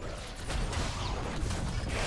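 A beam weapon fires with a buzzing hiss.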